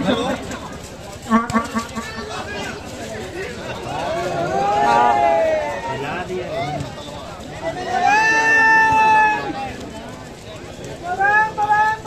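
A crowd shouts and cheers in the distance outdoors.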